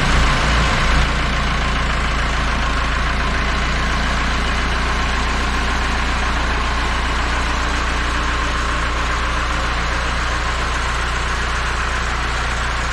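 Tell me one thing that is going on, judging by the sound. A vintage diesel tractor pulls forward.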